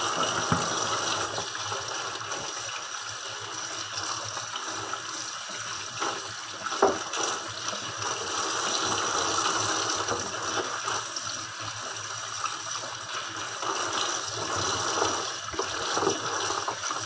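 Light knocks of a metal colander against a sink.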